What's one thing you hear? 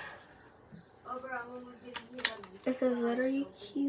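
A young girl speaks close to the microphone.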